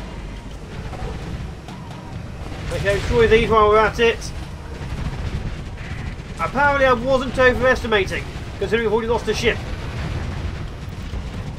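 Weapons fire and explosions rumble low and steadily.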